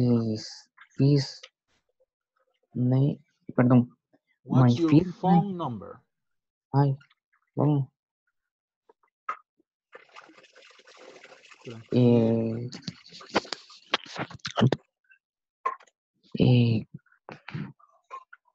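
A man speaks calmly over an online call, in short phrases with pauses.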